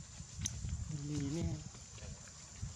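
A baby monkey squeaks softly close by.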